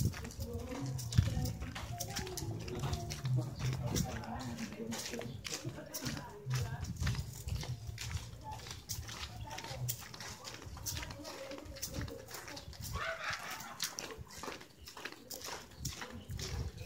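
Footsteps scuff and tap steadily on concrete.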